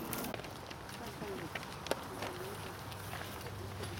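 A large crowd murmurs softly outdoors.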